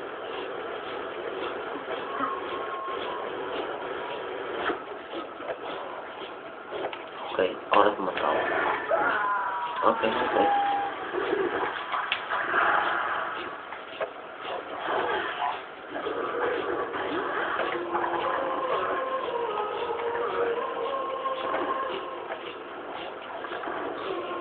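Video game music plays throughout.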